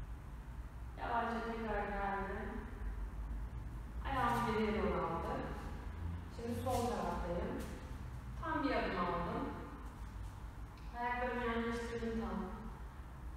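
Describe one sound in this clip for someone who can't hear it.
A woman speaks calmly in a room with a slight echo.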